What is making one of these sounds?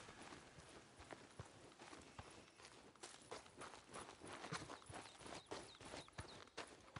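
Footsteps crunch quickly on a gravel path.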